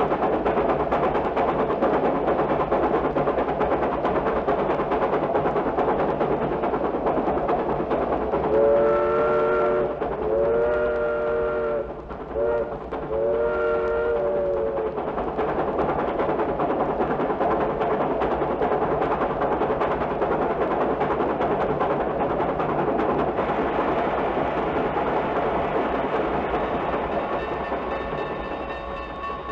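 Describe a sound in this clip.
Music plays from a spinning vinyl record.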